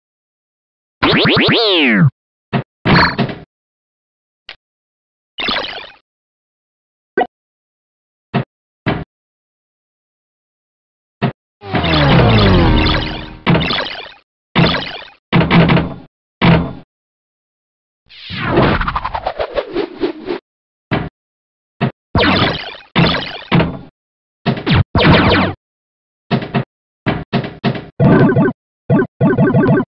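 Electronic pinball sounds beep, ding and whoosh in quick bursts as a ball strikes bumpers and targets.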